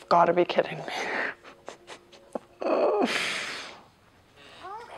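A woman laughs close to a microphone.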